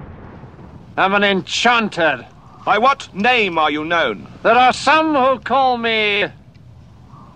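An elderly man speaks theatrically in a deep voice.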